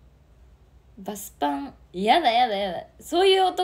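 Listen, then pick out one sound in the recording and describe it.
A young woman speaks brightly and sweetly into a close microphone.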